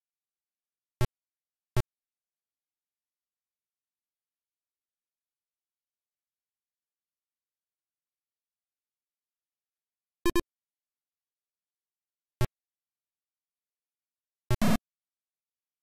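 Short electronic game beeps sound now and then.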